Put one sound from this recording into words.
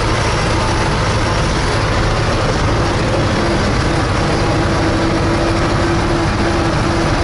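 A tractor engine roars loudly and steadily from inside the cab.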